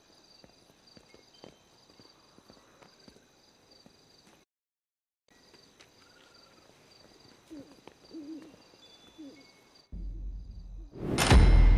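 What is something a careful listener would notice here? Footsteps tap on a tiled floor.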